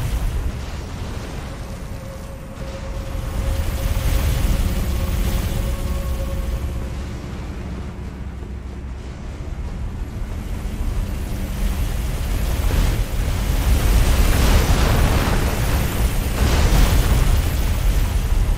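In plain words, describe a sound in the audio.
Heavy armoured footsteps clank on a stone floor.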